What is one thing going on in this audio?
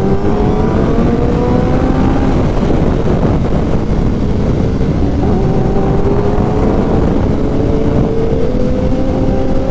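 A motorcycle engine roars steadily, rising in pitch as it speeds up and dropping at a gear change.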